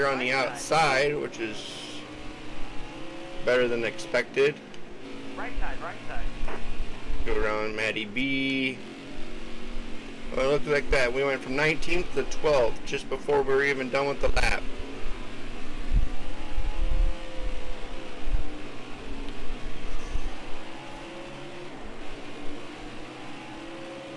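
Race car engines roar steadily.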